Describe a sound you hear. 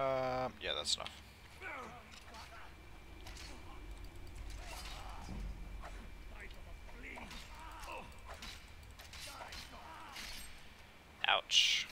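Metal weapons clash and thud in a fight.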